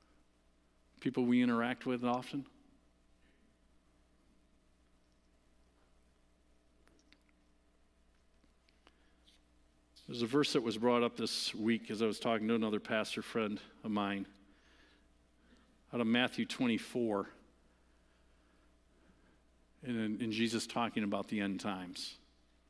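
A middle-aged man speaks calmly into a microphone in short bursts with pauses.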